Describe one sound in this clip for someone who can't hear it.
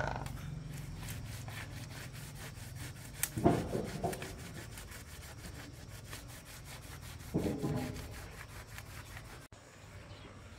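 A brush scrubs rapidly against a metal plate in water.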